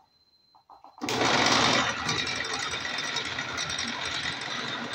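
A drill press motor whirs loudly and steadily.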